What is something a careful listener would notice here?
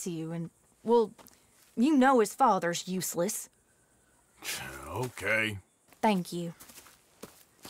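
A man speaks in a deep, calm voice up close.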